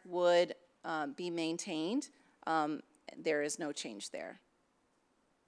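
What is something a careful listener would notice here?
A woman speaks calmly into a microphone, heard through an online call.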